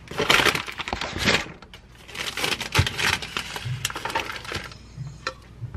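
A paper bag rustles and crinkles.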